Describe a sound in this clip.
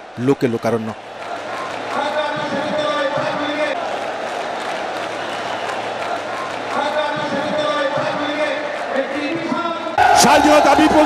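A large crowd roars and cheers outdoors.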